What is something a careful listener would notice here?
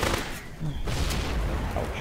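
A blast goes off with a bright roar.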